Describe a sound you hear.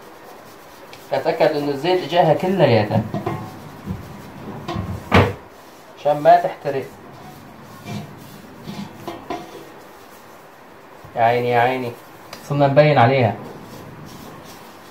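A cloth rubs and scrubs against a metal pan.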